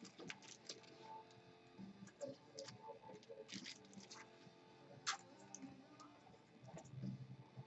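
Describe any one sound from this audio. Trading cards slide and tap against each other in the hands.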